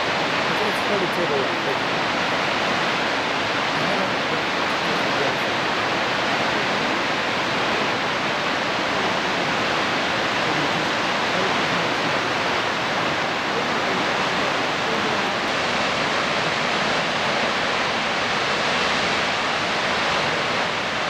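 A waterfall roars steadily in the distance.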